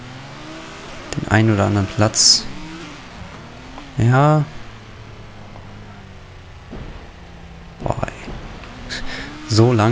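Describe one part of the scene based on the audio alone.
A racing car engine hums and revs as the car speeds along.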